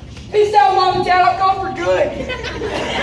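A young man sings loudly into a microphone, heard through a loudspeaker.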